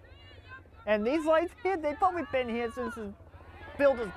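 A woman shouts encouragement loudly close by.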